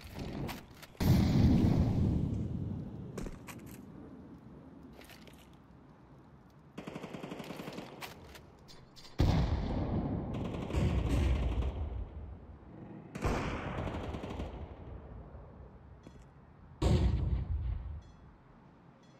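Gunshots crack out.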